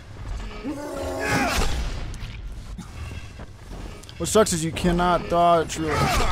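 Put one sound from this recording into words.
Heavy punches thud against a body.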